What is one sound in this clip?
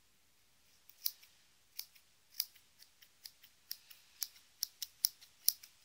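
Scissors snip repeatedly through hair with sharp clicks.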